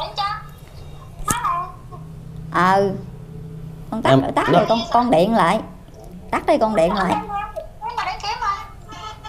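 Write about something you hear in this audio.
A young child speaks in a high voice close by.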